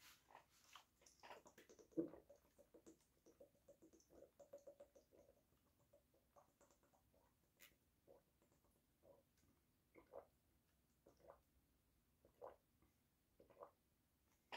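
A young man gulps water.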